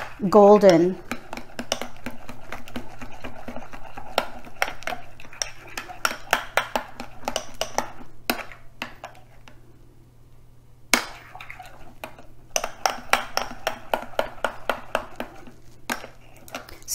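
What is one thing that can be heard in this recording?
A whisk clinks rapidly against a bowl.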